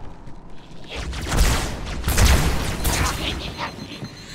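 A plasma blast bursts with a loud crackling roar.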